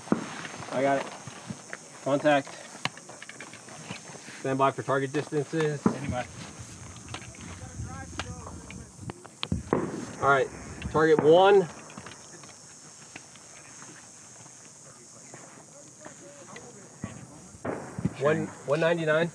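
A man speaks calmly outdoors.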